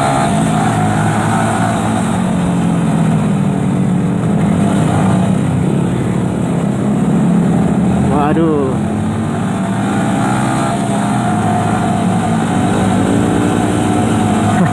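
A motorcycle engine hums steadily close by as the bike rides along.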